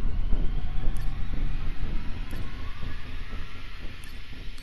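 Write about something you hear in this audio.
A short electronic blip sounds as each new message pops up.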